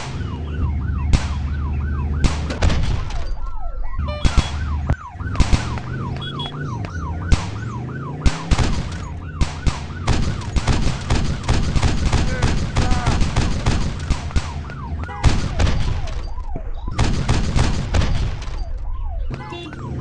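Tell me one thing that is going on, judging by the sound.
A revolver fires sharp shots.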